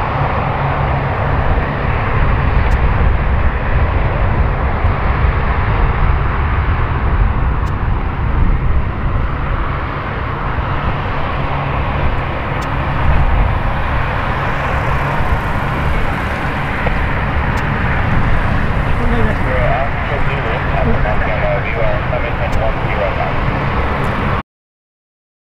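Propeller engines of an aircraft drone loudly and steadily.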